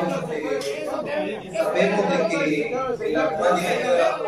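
A man argues loudly and with animation at close range.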